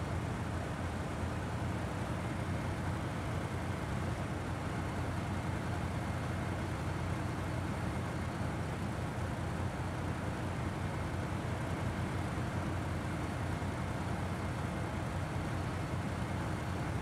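A heavy truck engine rumbles steadily as the truck crawls along.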